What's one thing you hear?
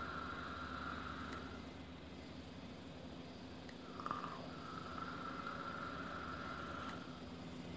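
An electronic vaporizer sizzles and hisses softly close by.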